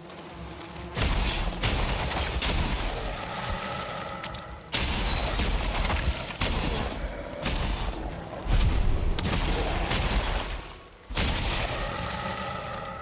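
Game combat noises clash and burst loudly.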